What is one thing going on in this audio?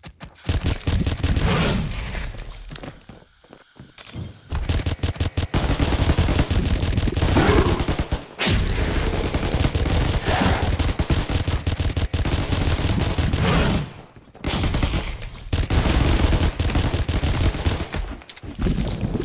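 Guns fire in rapid bursts, loud and close.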